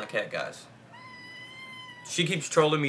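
A kitten meows softly.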